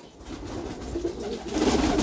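A pigeon flaps its wings.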